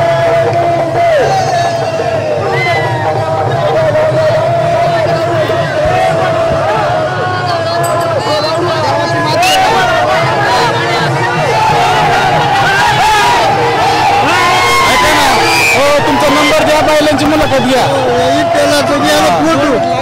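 A large outdoor crowd of men and women chatters and shouts loudly.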